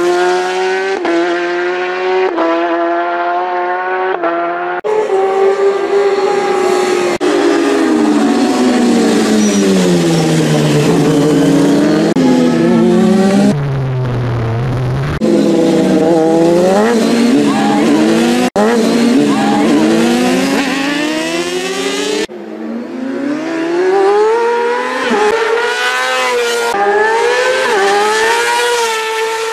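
Racing motorcycle engines scream at high revs, rising and falling as riders shift gears.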